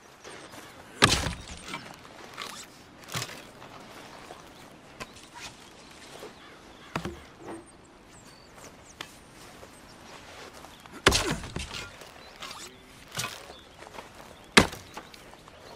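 An axe splits wood with sharp, heavy chops.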